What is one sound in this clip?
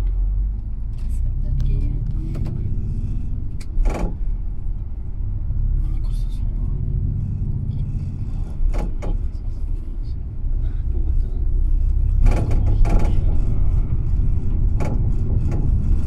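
A bus engine rumbles steadily as it drives.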